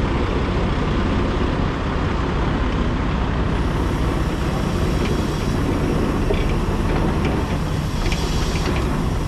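A vehicle engine rumbles steadily while driving down a street.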